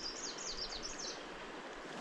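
A fishing reel clicks and whirs as its line is wound in.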